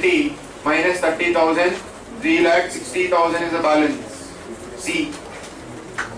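A man speaks loudly and clearly into a nearby microphone, lecturing.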